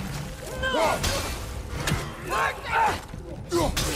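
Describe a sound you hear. An axe swings and strikes with heavy thuds.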